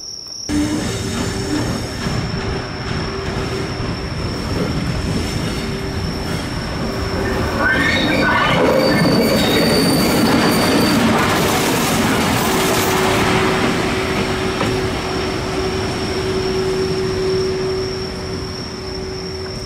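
A locomotive approaches with a growing rumble and roars past close by.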